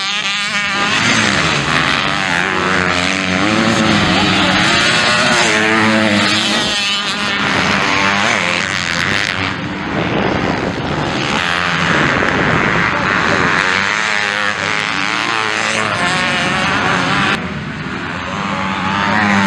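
Dirt bike engines rev and whine loudly.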